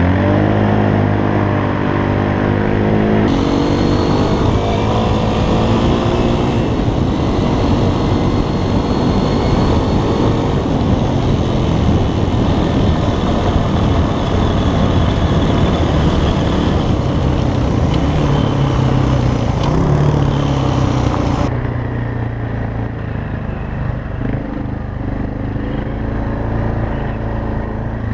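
Another dirt bike engine revs ahead, then idles.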